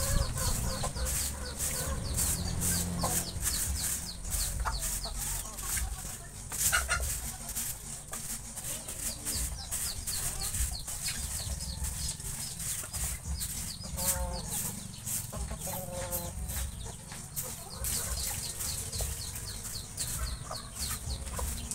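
A wooden stick scrapes and knocks against a cage floor.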